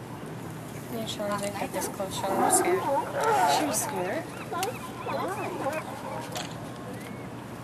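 Young women talk with animation close by.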